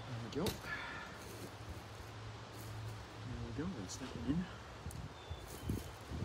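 Gloved hands press and rustle soil in a pot.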